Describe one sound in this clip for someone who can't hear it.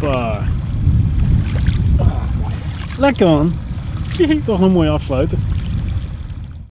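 Water splashes against a boat.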